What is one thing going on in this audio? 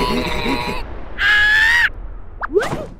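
A small cartoon mouse shrieks loudly.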